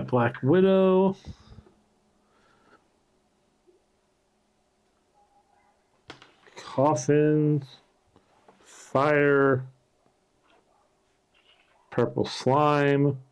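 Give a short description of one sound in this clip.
Small game pieces click and slide on a wooden table.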